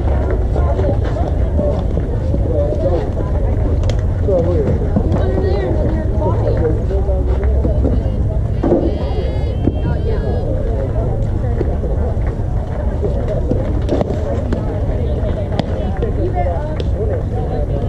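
Young girls call out and chatter across the field.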